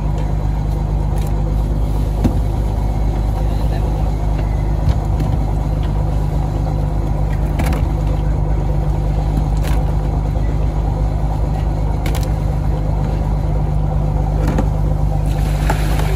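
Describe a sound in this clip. Fish thud into a plastic crate.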